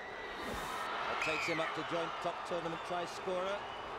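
Fans shout and cheer excitedly nearby.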